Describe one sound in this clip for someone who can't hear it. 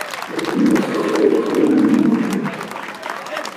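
A crowd cheers and chatters outdoors.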